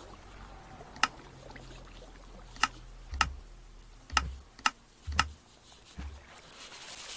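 Menu buttons click sharply, one tap at a time.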